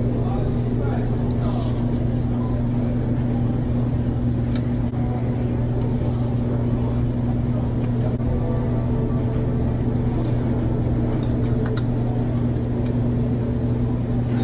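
A young man chews food noisily up close.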